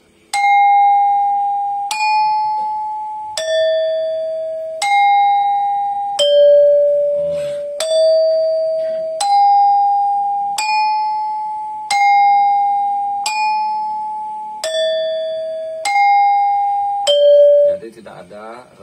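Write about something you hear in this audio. A Balinese gangsa is struck one note at a time with a wooden mallet, each metal key ringing out.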